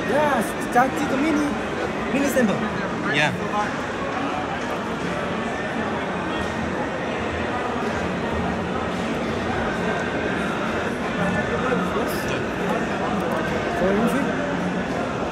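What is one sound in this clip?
Many people murmur in a large echoing hall.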